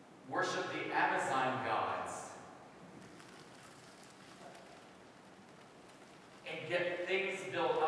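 A man speaks warmly into a microphone in a room with a slight echo.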